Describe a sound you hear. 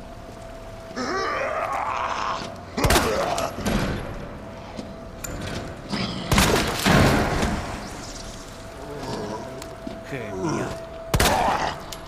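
A zombie groans and snarls.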